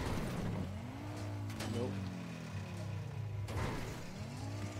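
A car lands hard with a thump after a jump.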